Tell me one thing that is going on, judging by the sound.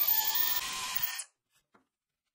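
A power drill whirs loudly as it bores through sheet metal.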